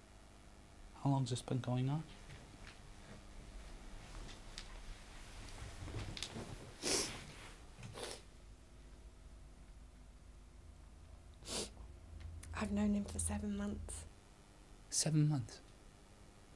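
A man speaks close by in a strained, tearful voice.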